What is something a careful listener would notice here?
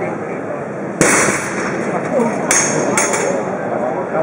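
A mallet strikes a high-striker with a loud clang.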